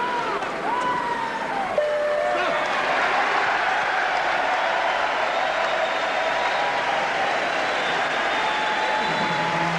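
A large crowd cheers and roars in a big echoing hall.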